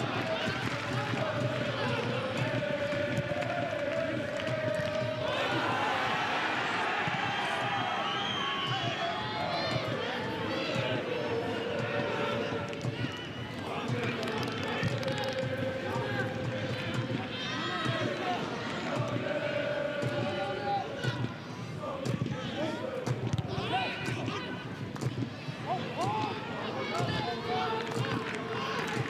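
A crowd cheers and chants steadily in a large open stadium.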